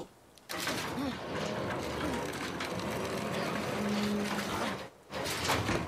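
A metal fence rattles and clanks as someone climbs it.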